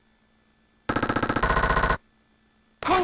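An arcade game plays a fast electronic jingle.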